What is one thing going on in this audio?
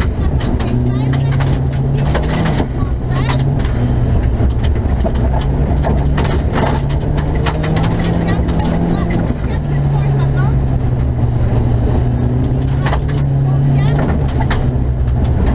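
A young woman reads out pace notes quickly through an intercom, close by.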